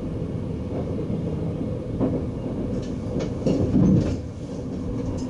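Wheels clatter over rail joints and switches.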